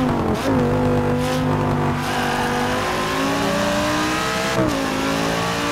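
A racing car engine roars loudly, its pitch climbing through the gears and dropping at each shift.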